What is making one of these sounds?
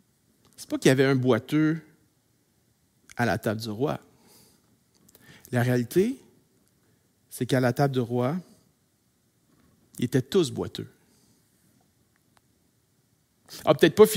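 A middle-aged man speaks calmly and clearly into a microphone, pausing between phrases.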